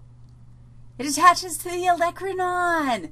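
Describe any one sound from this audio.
A woman speaks with animation into a close microphone, her voice drawn out in a sing-song way.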